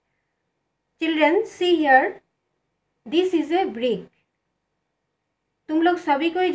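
A woman speaks calmly and clearly, close by, in short phrases with pauses.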